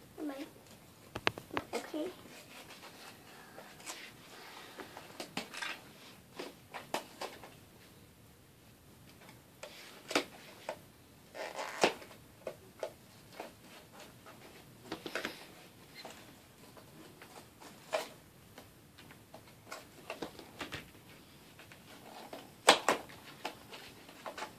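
Plastic wrapping crinkles and rustles as a young girl opens a packet.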